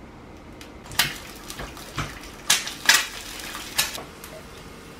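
An eggshell cracks and taps against a pan.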